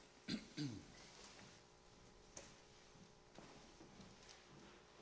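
Footsteps thud on a wooden floor in an echoing hall.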